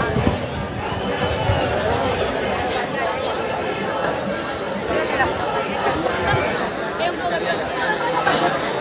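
A large crowd of men and women chant and shout loudly outdoors.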